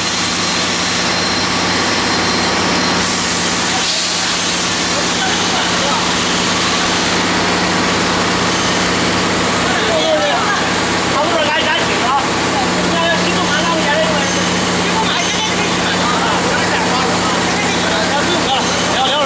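A large machine hums steadily.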